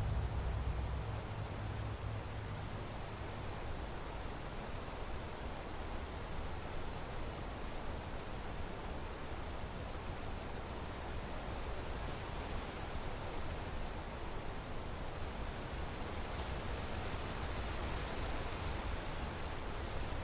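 Footsteps rustle through tall grass and crunch over stones.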